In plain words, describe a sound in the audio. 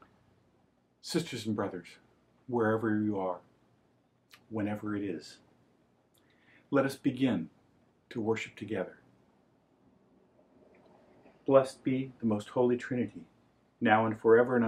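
An older man chants or reads aloud in a steady, measured voice, close by.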